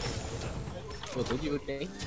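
A level-up chime rings out in a video game.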